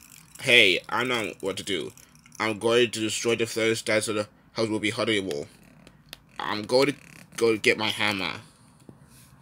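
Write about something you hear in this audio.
A man speaks in an exaggerated, animated cartoon voice through a small speaker.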